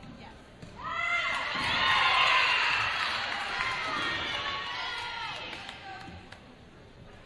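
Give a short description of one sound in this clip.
Spectators cheer and clap in a large echoing gym.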